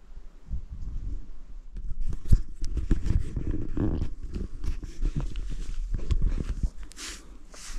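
Footsteps crunch and rustle through brush.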